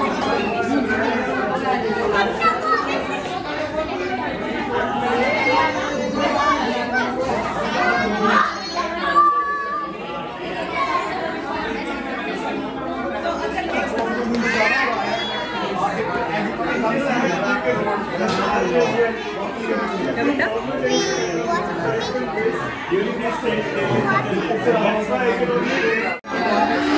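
A crowd of women and men chatter loudly in a busy, echoing room.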